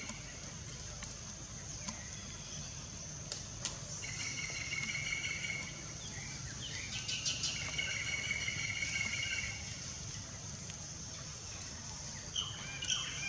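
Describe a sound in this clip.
Dry leaves rustle under a baby monkey's feet.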